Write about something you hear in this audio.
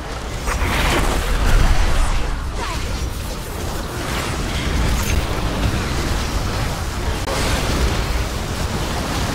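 Weapons clash in a video game melee fight.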